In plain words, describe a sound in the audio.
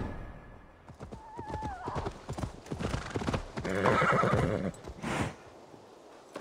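Horse hooves clop on a dirt path.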